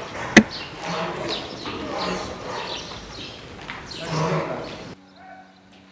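A flock of sheep bleats loudly in an echoing shed.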